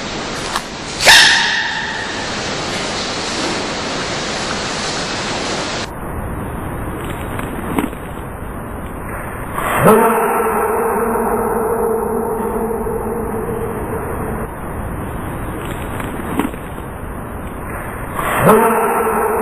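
A baby panda sneezes sharply.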